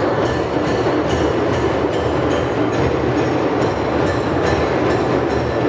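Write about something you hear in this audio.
A large group plays hand drums together in a steady, driving rhythm.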